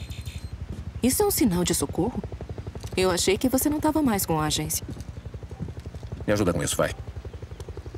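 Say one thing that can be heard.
A woman speaks softly and calmly.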